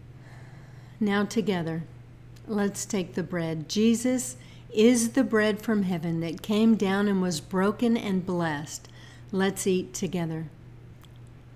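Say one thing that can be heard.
A middle-aged woman speaks calmly and warmly, close to the microphone.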